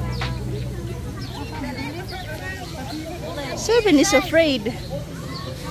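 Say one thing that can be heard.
A woman talks softly nearby.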